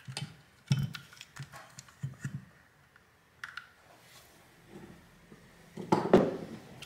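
Plastic parts click and rattle as hands handle a small device.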